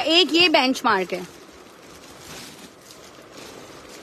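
Plastic wrapping crinkles as hands handle packaged fabric.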